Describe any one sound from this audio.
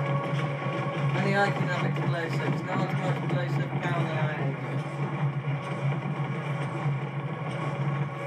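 Explosions boom in a video game played through a television speaker.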